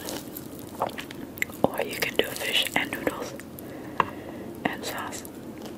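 Fingers tear and pull apart crisp grilled fish skin and flesh close to a microphone.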